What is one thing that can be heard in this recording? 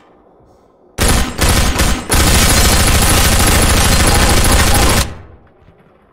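A submachine gun fires a long rapid burst.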